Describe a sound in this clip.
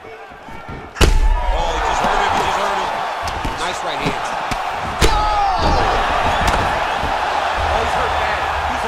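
A crowd roars and cheers.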